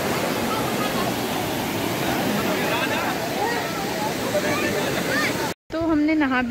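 A crowd of people chatter and shout over the water.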